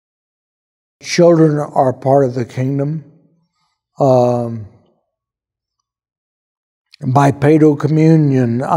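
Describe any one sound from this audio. An elderly man speaks calmly and thoughtfully into a close microphone, with pauses.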